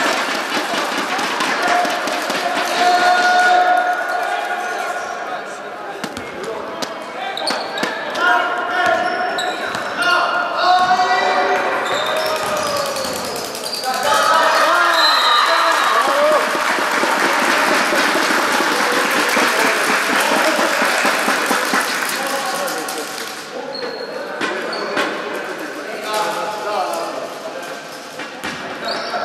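Young girls shout and call out to each other.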